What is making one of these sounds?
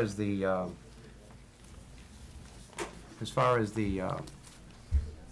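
An older man speaks briefly into a microphone.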